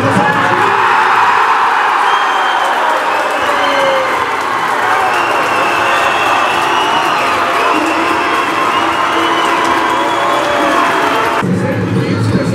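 A crowd cheers loudly in a large echoing hall.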